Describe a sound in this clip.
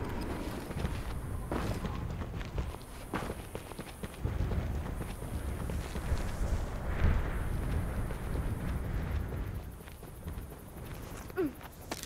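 Lava rumbles and bubbles with a low, steady roar.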